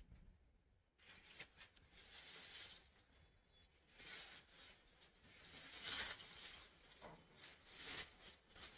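Fabric rustles softly as it is lifted and shaken.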